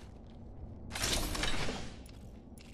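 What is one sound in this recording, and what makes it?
A metal supply bin opens with a mechanical whoosh.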